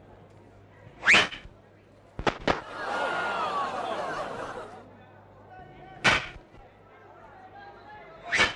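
Hockey pucks are shot hard with a stick, each with a sharp whoosh and smack.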